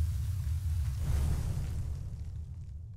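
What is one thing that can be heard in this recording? A heavy stone ring lands with a dull rumbling thud.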